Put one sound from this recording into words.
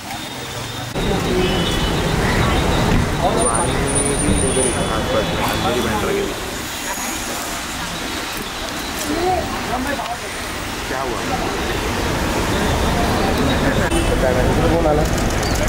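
A crowd of men chatter and call out outdoors.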